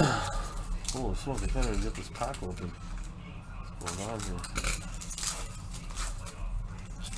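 Foil card packs crinkle and tear as hands open them.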